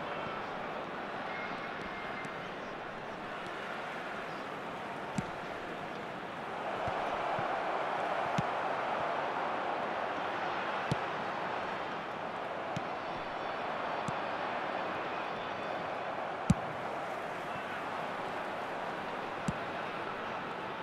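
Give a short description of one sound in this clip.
A large stadium crowd roars steadily, swelling louder for a while.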